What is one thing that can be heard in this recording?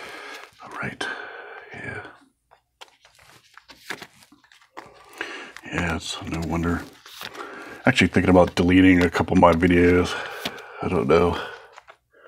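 Plastic card sleeves rustle and crinkle as cards slide in and out.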